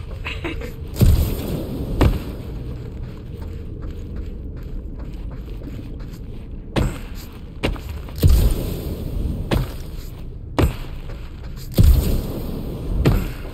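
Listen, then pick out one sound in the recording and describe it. Heavy thuds and booms sound at intervals.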